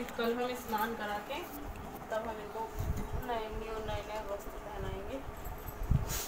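A woman sings close by.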